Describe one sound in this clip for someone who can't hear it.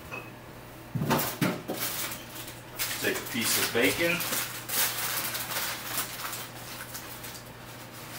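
Kitchen utensils and dishes clatter and knock.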